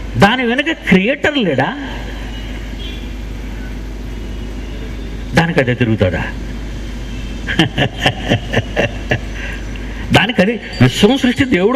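An older man speaks emphatically into a microphone, with long pauses, heard through a loudspeaker.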